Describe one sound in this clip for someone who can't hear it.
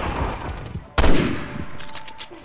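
A rifle shot cracks loudly and echoes.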